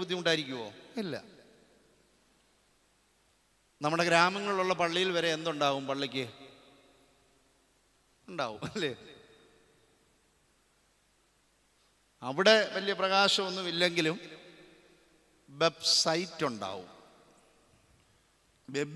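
A middle-aged man speaks with animation into a microphone, in bursts with pauses, his voice echoing in a large hall.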